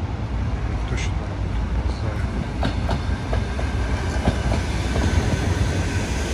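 An electric train approaches and rolls past on the rails with clacking wheels.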